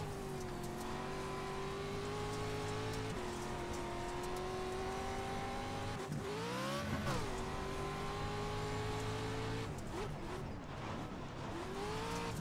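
A race car engine roars and revs up and down through gear changes.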